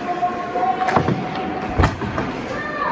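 A hockey stick smacks a puck with sharp cracks.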